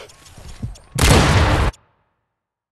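A sniper rifle fires a single loud, booming shot.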